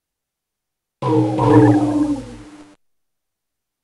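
A spaceship swoops past with a whooshing sound.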